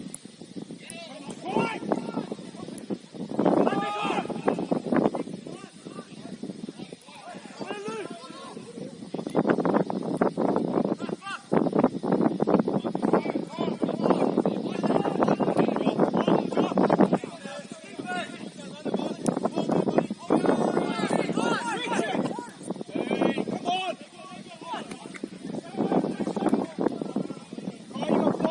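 Young men shout and call to each other across an open outdoor field.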